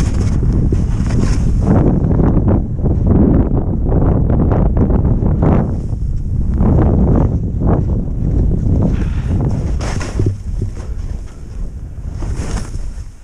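Skis hiss and swish through soft snow.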